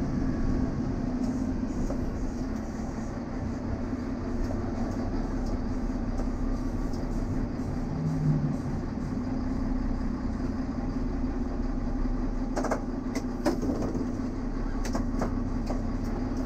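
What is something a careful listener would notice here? A diesel railcar's engine hums.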